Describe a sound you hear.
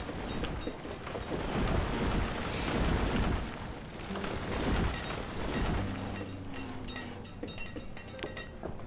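Wind blows in gusts during a snowstorm.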